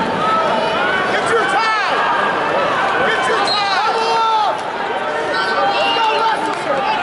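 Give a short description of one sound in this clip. A large crowd shouts and cheers in a big echoing arena.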